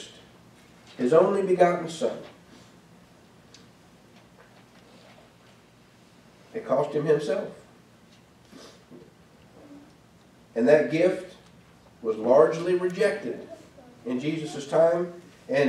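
A man speaks calmly into a microphone, with pauses, reading out.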